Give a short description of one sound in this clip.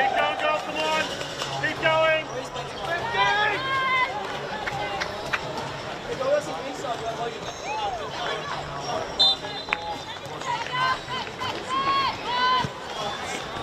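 Young women shout and call to each other outdoors at a distance.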